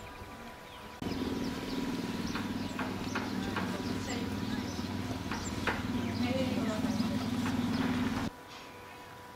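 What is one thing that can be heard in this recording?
Footsteps tread on brick stairs.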